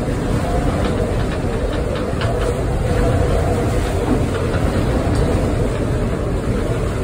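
Rough waves slap against the hull.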